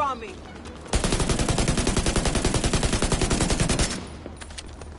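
A rifle fires in a rapid burst, loud and close.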